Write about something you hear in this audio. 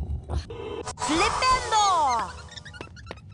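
A magic spell crackles and whooshes with bright rising and falling tones.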